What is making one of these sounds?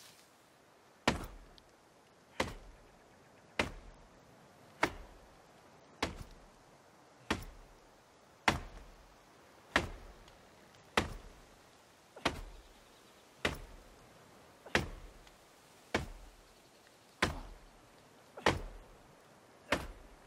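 An axe chops into a tree trunk with regular heavy thuds.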